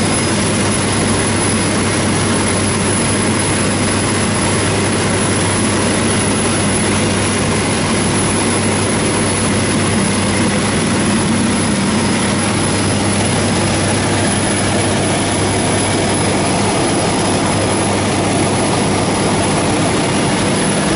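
An aircraft engine drones loudly and steadily from close by.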